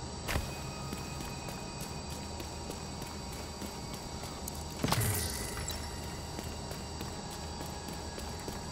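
Footsteps tread steadily on pavement.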